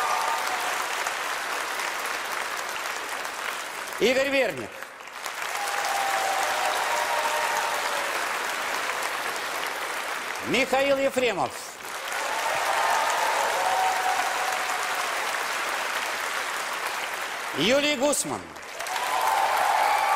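A large audience applauds and cheers in a big hall.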